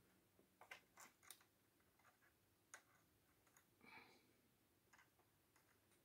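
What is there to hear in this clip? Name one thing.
A metal hook clicks softly against plastic pegs.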